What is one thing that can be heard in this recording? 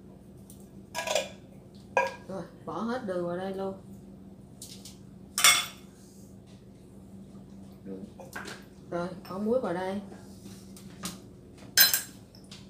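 Metal spoons clink against bowls.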